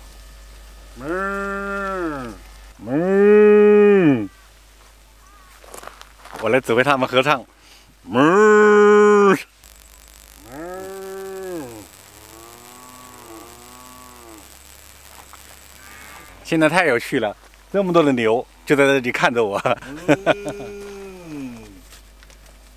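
Cows moo loudly in a long, drawn-out way.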